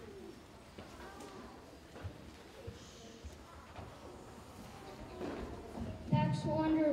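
Children murmur and chatter softly in a large echoing hall.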